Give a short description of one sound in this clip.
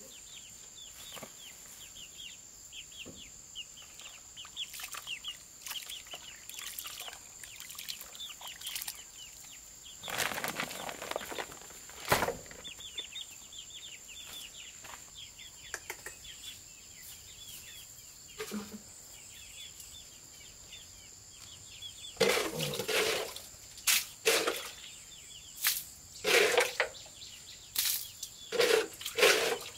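Chicks cheep nearby.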